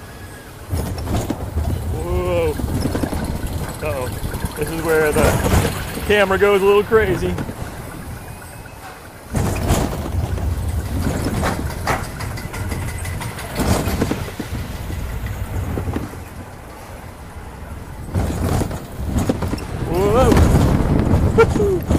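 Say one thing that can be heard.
A roller coaster rumbles and clatters along its track.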